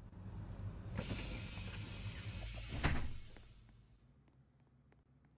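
A bus door opens with a loud hiss of air.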